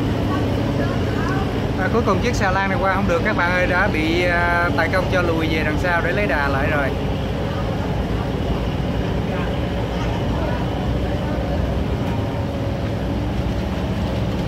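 Water gushes from a barge's outlet pipe into the river.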